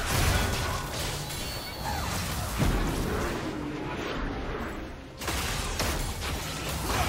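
Game spell effects whoosh and crackle in a fight.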